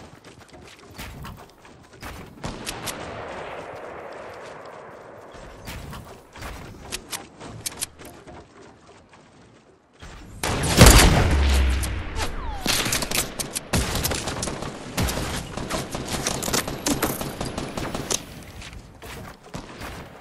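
Footsteps run on grass.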